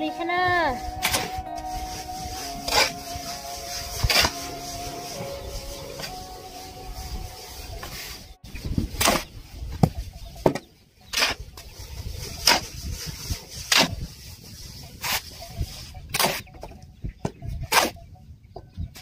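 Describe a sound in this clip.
A shovel scrapes and knocks against a concrete floor again and again.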